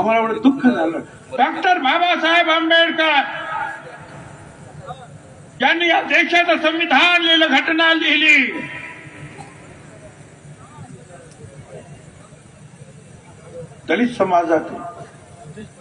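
An elderly man speaks forcefully into a microphone over loudspeakers.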